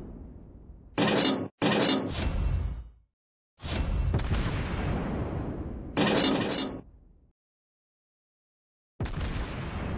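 Heavy naval guns fire in loud booming bursts that rumble and fade.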